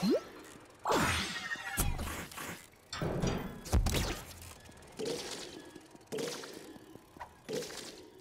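Playful video game sound effects whoosh and chime in short bursts.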